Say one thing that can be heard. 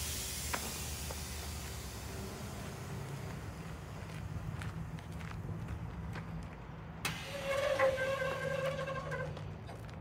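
Compressed air hisses out under a semi-trailer, blowing up dust.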